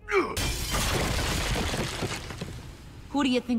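Heavy rubble crashes and rumbles as it collapses.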